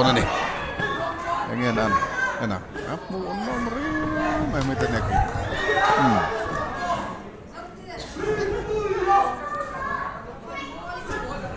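A crowd shouts and cheers loudly nearby.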